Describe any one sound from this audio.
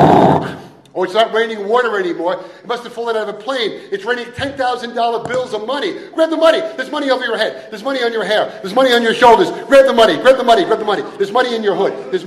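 A middle-aged man speaks steadily through a microphone.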